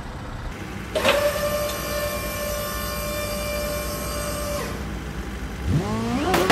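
A hydraulic tilt bed whines as it raises.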